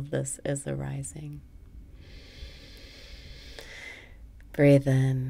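A young woman speaks warmly and close to a microphone.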